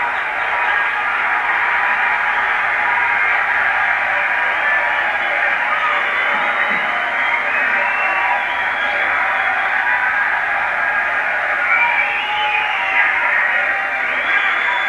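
A large crowd cheers and roars steadily, heard through a small loudspeaker.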